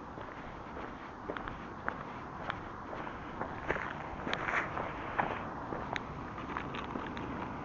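Footsteps scuff on pavement outdoors.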